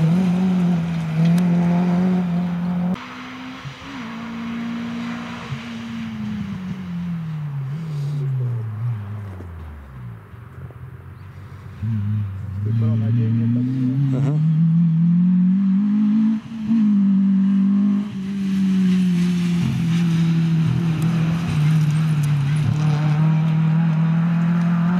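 A rally car engine roars at full throttle, shifting through gears.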